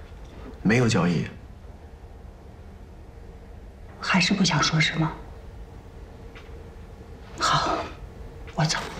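A young man speaks calmly and briefly, close by.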